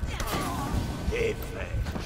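Steel blades clash.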